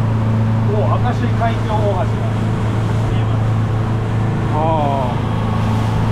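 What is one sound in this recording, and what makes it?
A man speaks briefly nearby, raising his voice over the engine.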